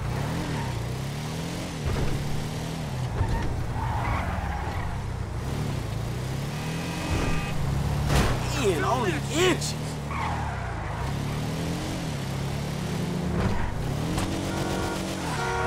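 A racing car engine revs up and down as it speeds along.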